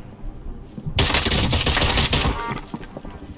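Rapid gunfire rattles loudly and close.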